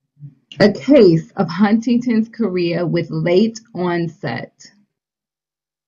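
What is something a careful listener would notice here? A woman speaks calmly into a microphone over an online call.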